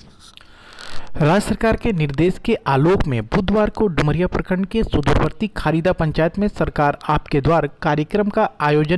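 A man speaks steadily and clearly, close to a microphone.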